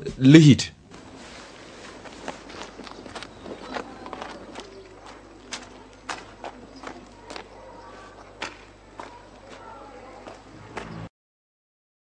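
A walking stick taps on hard ground with slow steps.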